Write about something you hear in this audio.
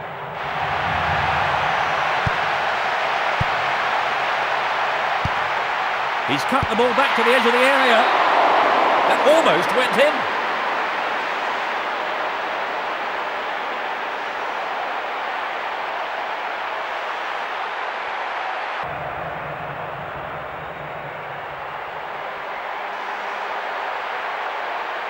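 A large stadium crowd roars steadily, swelling briefly.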